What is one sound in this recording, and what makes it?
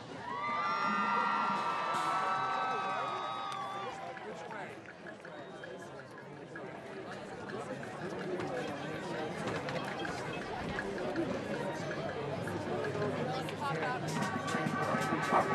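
A marching band's brass section holds loud sustained chords outdoors.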